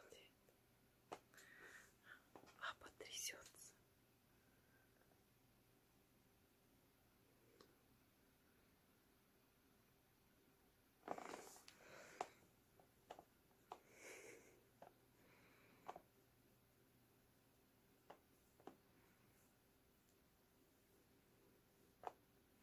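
A cat purrs softly and steadily close by.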